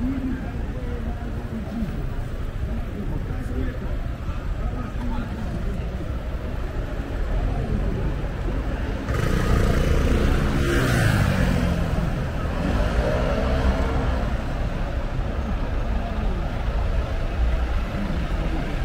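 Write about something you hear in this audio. Traffic rumbles steadily along a busy street.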